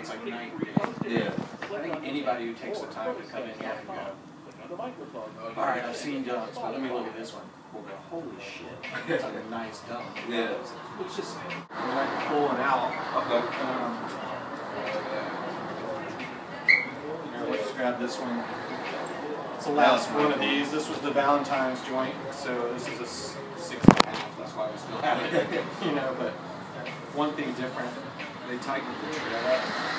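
A second man talks briefly in reply.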